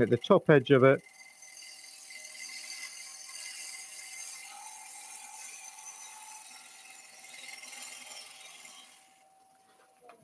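A wood lathe gouge scrapes and hisses against spinning wood.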